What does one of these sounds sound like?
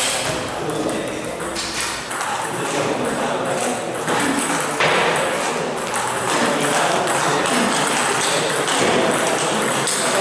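A table tennis ball clicks back and forth on paddles and a table.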